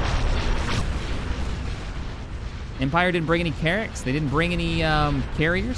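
Laser cannons fire and explosions boom in a space battle.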